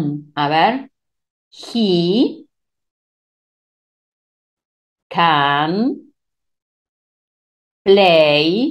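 A woman speaks slowly and clearly into a microphone, with pauses between phrases.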